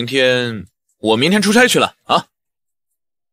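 A young man speaks with surprise close by.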